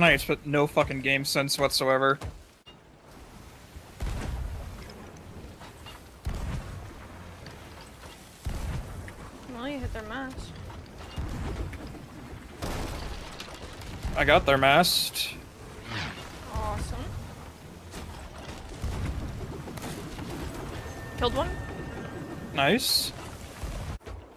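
Waves surge and crash against a ship's hull.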